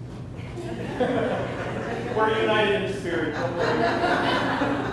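A group of men and women sing together in a large echoing room.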